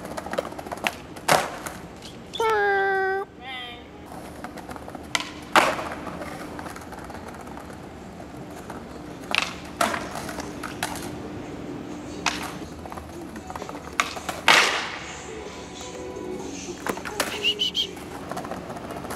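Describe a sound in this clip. Skateboard wheels roll over paving stones.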